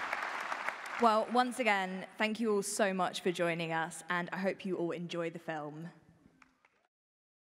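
A woman speaks through a microphone in a large hall.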